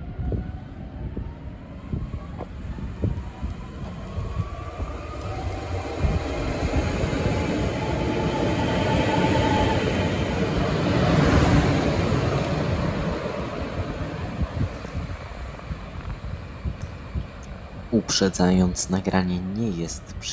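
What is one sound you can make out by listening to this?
A train rumbles into the station, its rumble building as it passes close by and then fading.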